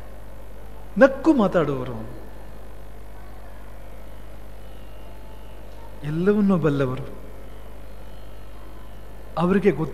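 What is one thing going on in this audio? A man sings in short, drawn-out phrases through a microphone, with pauses between them.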